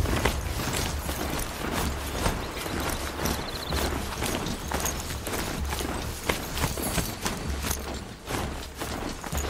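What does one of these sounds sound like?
Footsteps crunch quickly through snow and gravel.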